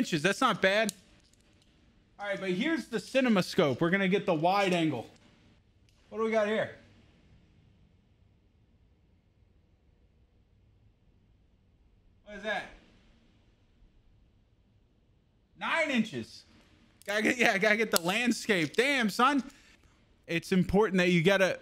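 A young man talks calmly and with animation close to a microphone.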